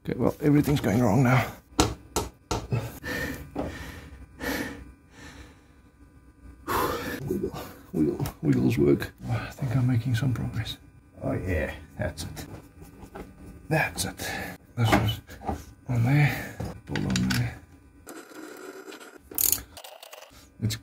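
Metal engine parts clink and rattle as they are handled.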